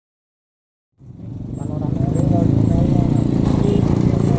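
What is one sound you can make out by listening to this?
A motorcycle engine putters close by.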